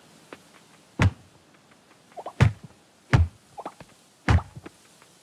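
Wooden boards knock and clatter in a few quick thuds.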